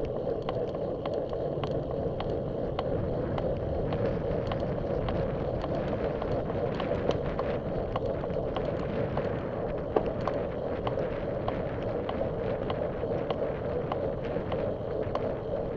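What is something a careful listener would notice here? Wind rushes and buffets steadily while riding outdoors.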